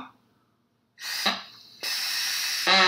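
A young man blows a shrill, wavering whistle on a straw.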